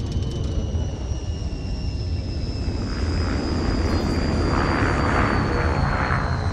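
A spacecraft engine rumbles low and steady.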